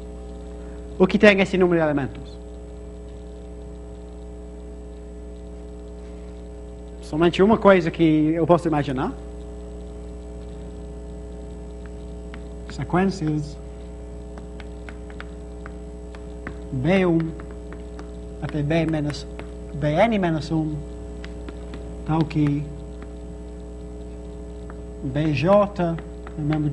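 A man speaks calmly in short bursts with pauses, close by.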